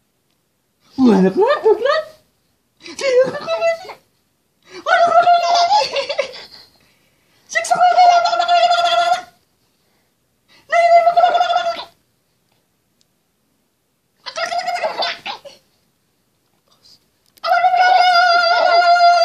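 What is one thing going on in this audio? A baby giggles and squeals with delight in repeated bursts, close by.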